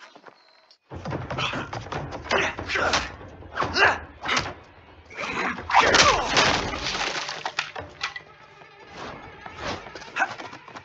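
Blows and thuds land in a scuffle.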